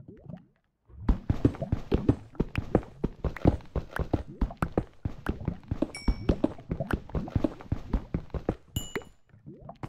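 A pickaxe chips rapidly at stone, blocks cracking and crumbling.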